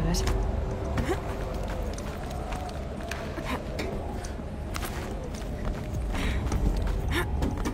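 Hands and feet knock on a metal ladder during a climb.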